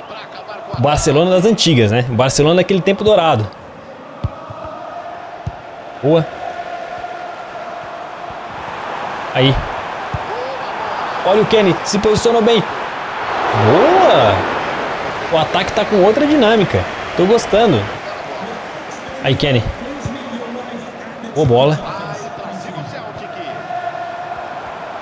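A stadium crowd roars and swells steadily in the background.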